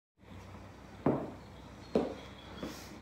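Shoes stomp on a hard floor.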